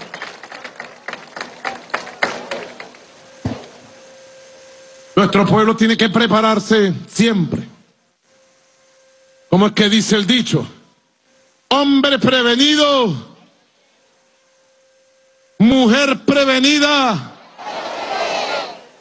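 A large outdoor crowd claps and cheers.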